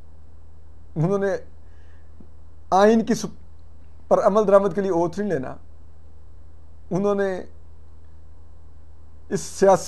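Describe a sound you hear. A young man speaks calmly and close through a microphone, in short phrases with pauses.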